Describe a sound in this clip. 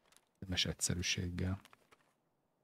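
A man speaks briefly and casually, close to a microphone.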